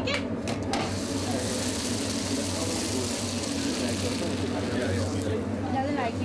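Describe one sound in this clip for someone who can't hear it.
Batter sizzles as it is poured into a hot pan.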